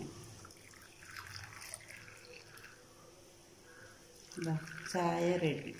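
Tea pours into glass cups with a soft trickle.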